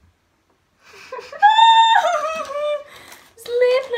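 A young woman gasps and exclaims loudly close by.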